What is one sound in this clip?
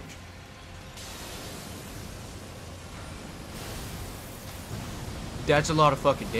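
A magic spell bursts with a shimmering whoosh.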